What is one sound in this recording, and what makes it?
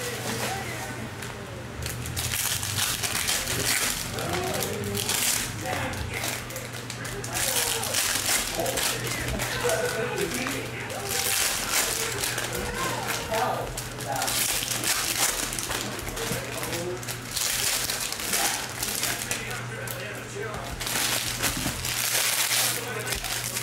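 Foil card packs crinkle and rustle as they are handled and torn open.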